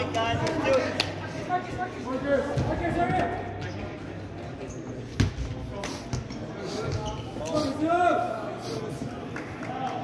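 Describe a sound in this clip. A ball bounces on the hard floor.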